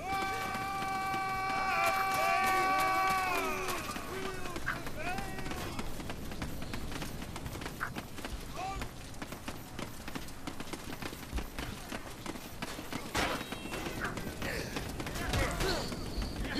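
Footsteps tramp quickly over stone.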